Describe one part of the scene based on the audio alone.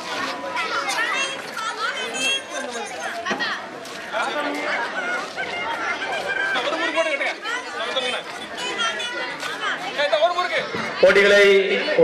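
Several children chatter and call out nearby.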